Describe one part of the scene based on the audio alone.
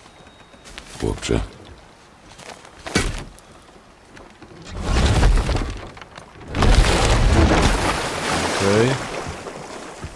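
An elderly man talks into a microphone in short bursts.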